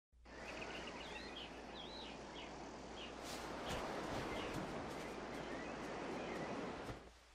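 Wind blows steadily through the trees outdoors.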